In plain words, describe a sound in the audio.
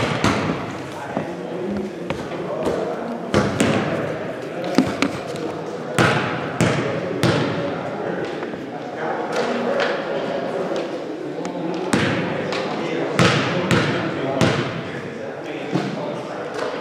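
Young men talk and call out across the echoing hall.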